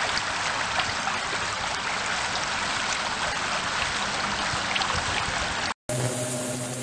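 A shallow stream rushes and splashes over stones outdoors.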